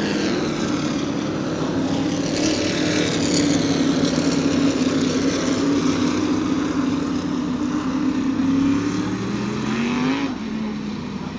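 Race car engines roar loudly as cars speed past on a track.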